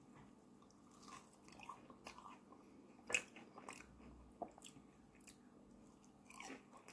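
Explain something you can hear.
Food crunches and squelches close to a microphone as a woman chews.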